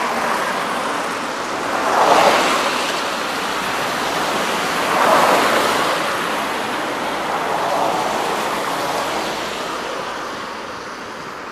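A low-floor electric tram pulls away and rolls past close by.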